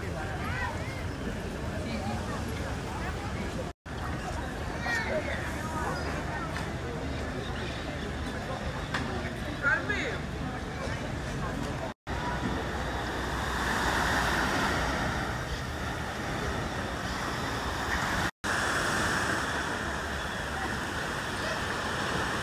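People chatter in a crowd outdoors.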